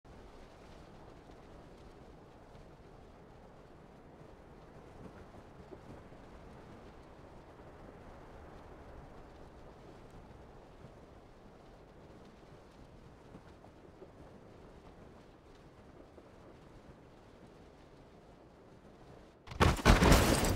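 Wind rushes steadily past a falling parachutist.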